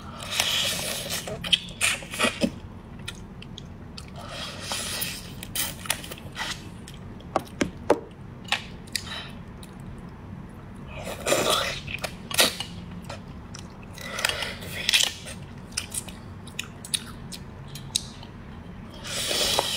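A woman cracks and crunches crab shell close to a microphone.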